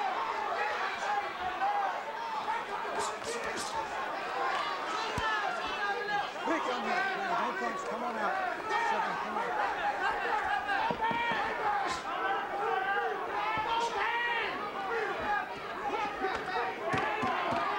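A large crowd murmurs in a big arena.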